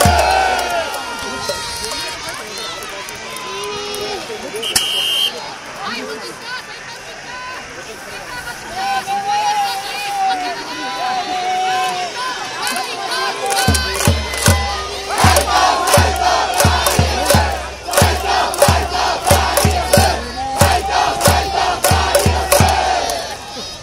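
A brass band plays loudly outdoors.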